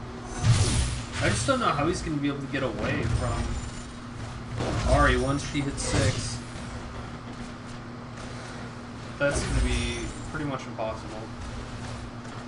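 A young man talks excitedly close to a microphone.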